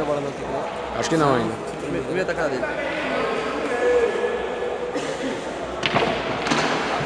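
Pool balls click together sharply.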